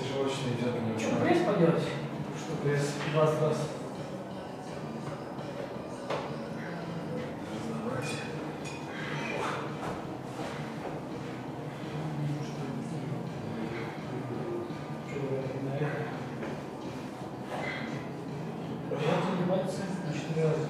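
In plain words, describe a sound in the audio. Men talk in a room with a slight echo.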